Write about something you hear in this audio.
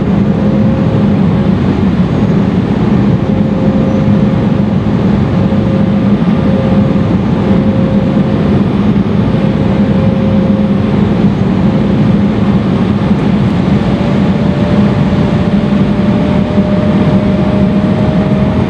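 Jet engines roar steadily from inside an airliner cabin.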